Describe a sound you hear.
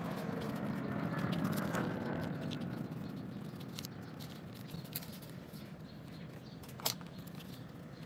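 Folded paper rustles and crinkles between fingers.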